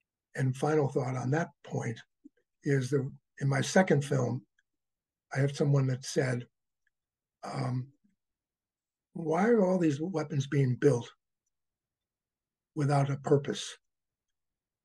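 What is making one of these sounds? An elderly man talks with animation over an online call.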